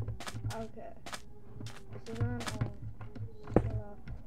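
A block is placed with a soft thud.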